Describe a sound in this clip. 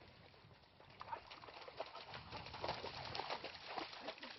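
A dog splashes through water.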